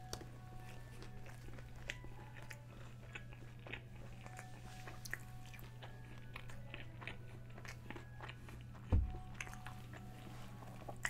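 A man chews food with his mouth closed, making soft wet smacking sounds.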